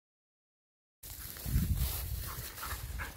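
A dog rustles through dry grass close by.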